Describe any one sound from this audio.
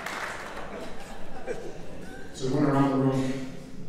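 A middle-aged man speaks with animation into a microphone over loudspeakers.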